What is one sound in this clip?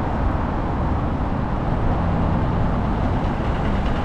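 A truck passes close by with a deep engine rumble.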